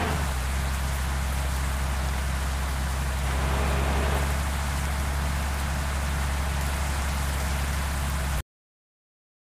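Rain hisses on a wet road.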